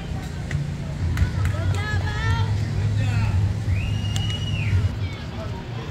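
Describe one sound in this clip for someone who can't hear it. Young girls call out and cheer from a distance.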